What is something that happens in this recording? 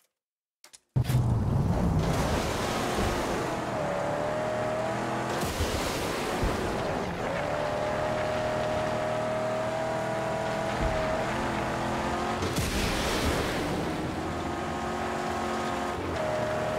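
Tyres hiss on loose sand.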